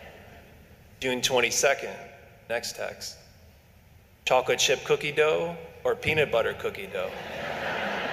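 A young man speaks calmly into a microphone, heard over a loudspeaker in an echoing room.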